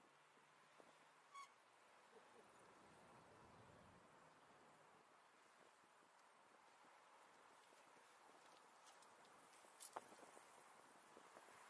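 Wind rushes softly outdoors.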